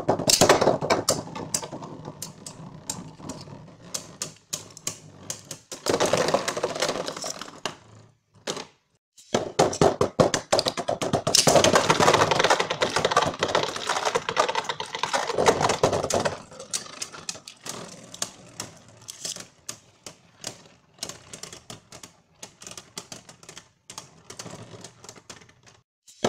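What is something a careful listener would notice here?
Spinning tops clack sharply against each other and the plastic rim.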